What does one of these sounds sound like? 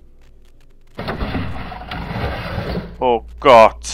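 A wooden door slides open with a rough scraping rattle.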